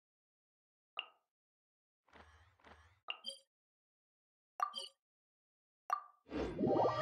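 Menu buttons click several times.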